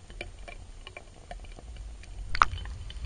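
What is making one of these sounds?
Water bubbles and churns underwater.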